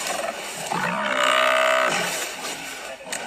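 A buffalo bellows loudly.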